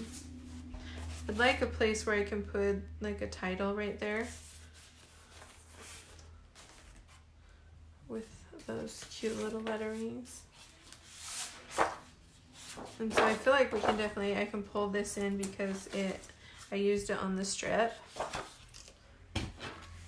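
Sheets of paper rustle and slide across a table.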